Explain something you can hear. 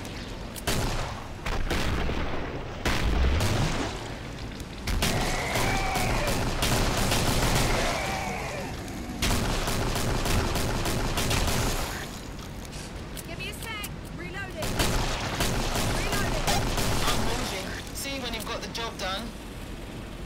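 Rapid gunfire rattles and echoes down a tunnel.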